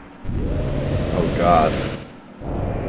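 A young man speaks casually into a nearby microphone.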